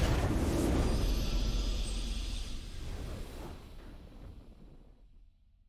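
A triumphant victory sound swells and slowly fades.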